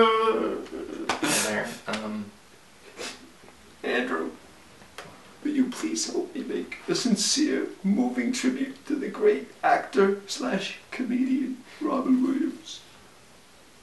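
A man talks with emotion nearby.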